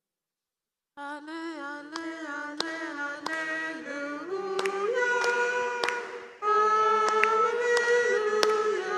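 A young man sings slowly through a microphone.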